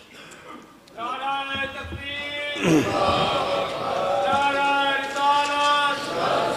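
A man chants in a loud, drawn-out voice through a microphone and loudspeakers.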